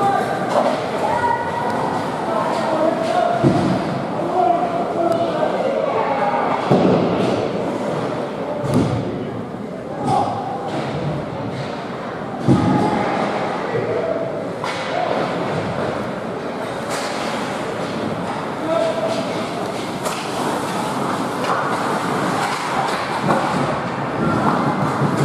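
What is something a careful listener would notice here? Ice hockey skates scrape and carve on ice in a large echoing arena.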